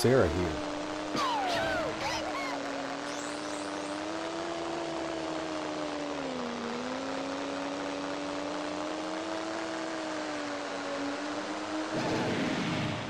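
A steady engine drone hums, rising and dipping slightly in pitch.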